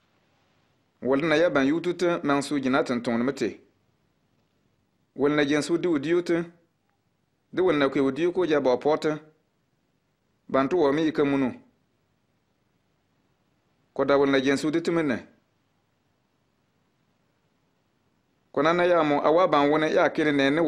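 Men speak calmly in turn, close by, with short pauses.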